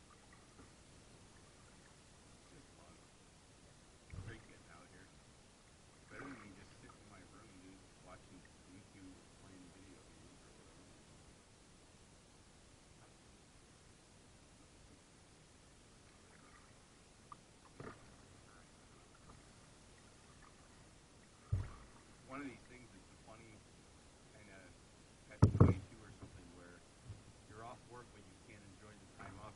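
Water laps softly against a kayak's hull.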